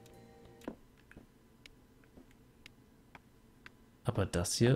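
Footsteps tap at a steady pace on a stone floor.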